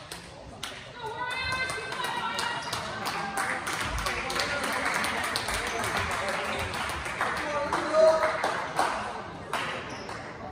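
Young players shout and cheer in a large echoing gym.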